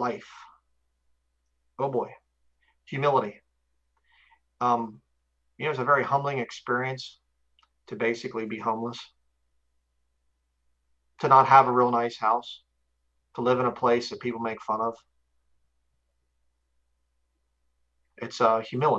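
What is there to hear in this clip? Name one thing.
A man speaks calmly into a microphone in short phrases over an online call.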